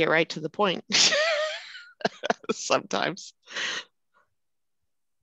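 A middle-aged woman laughs heartily over an online call.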